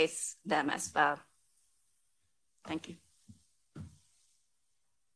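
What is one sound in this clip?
A woman speaks calmly into a microphone, in short bursts with pauses.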